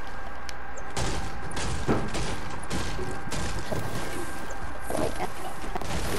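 A pickaxe strikes a wooden roof with sharp knocks.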